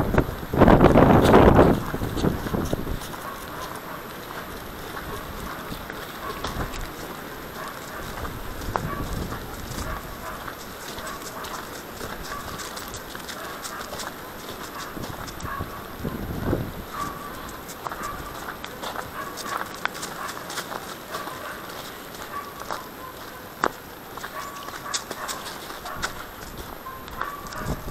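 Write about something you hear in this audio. Footsteps crunch on thin snow at a steady walking pace.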